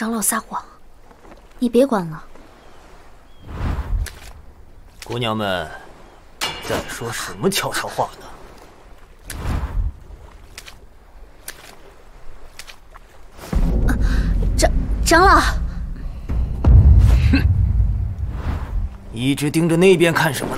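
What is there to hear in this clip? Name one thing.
A young woman speaks softly and clearly.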